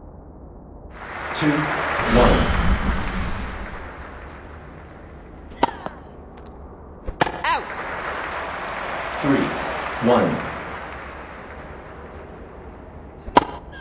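A crowd cheers and applauds, swelling and fading.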